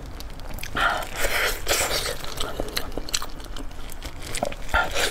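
A young woman chews and bites into soft meat close to a microphone, with wet smacking sounds.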